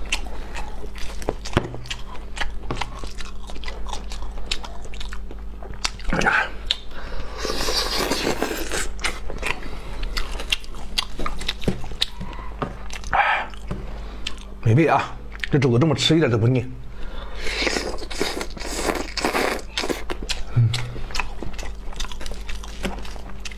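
A cleaver slices through braised meat.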